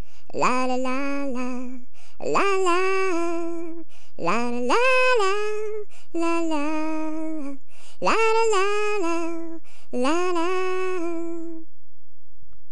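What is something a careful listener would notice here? A party horn toots a short tune.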